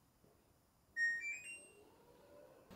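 An appliance plays a short rising electronic chime.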